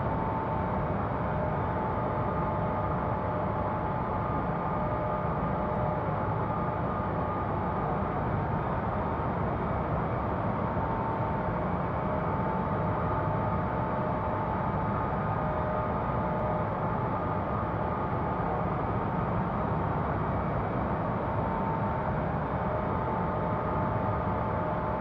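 Jet engines roar steadily, with a low rumble and a faint whine.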